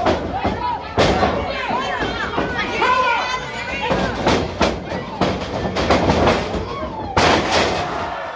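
Bodies slam onto a wrestling ring's canvas with loud thuds.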